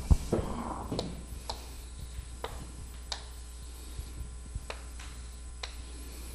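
Chalk scrapes and taps on a board.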